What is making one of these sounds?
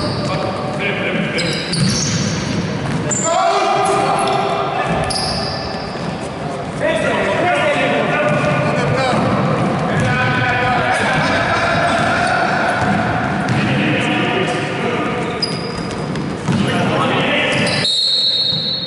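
Young men shout and call out to each other, echoing in a large hall.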